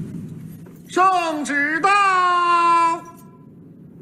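A man proclaims loudly and solemnly.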